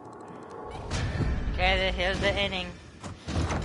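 A short musical chime plays a rising tune.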